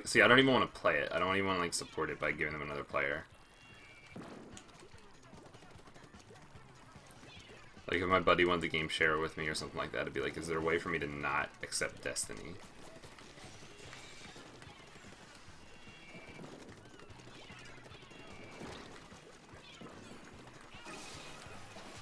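Ink guns splatter and pop quietly in a video game.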